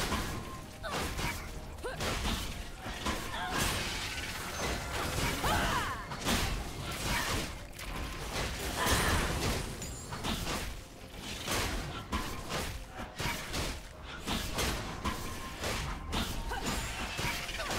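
Magic spells blast and crackle in a fast fight.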